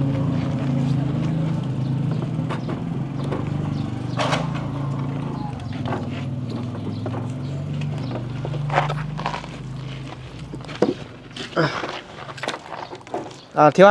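Concrete blocks knock against each other as they are stacked.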